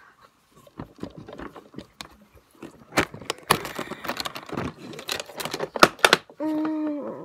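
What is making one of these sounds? Plastic clatters and knocks as a keyboard is handled close by.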